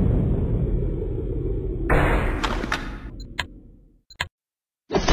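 Video game music plays loudly and then cuts off.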